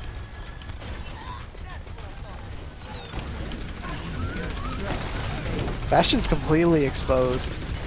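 Guns fire in rapid bursts in a video game.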